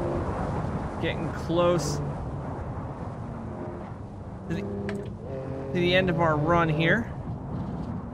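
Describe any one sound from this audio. Car tyres squeal briefly through corners.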